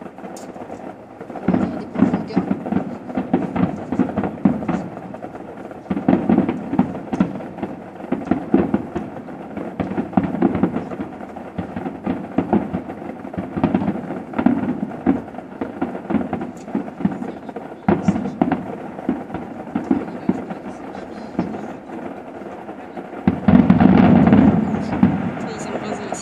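Fireworks bang and crackle in the distance.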